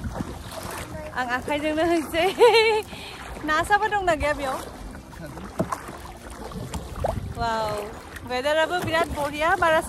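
A young woman talks cheerfully close to the microphone.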